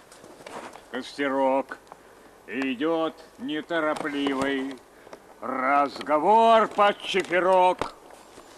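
An older man speaks calmly close by, outdoors.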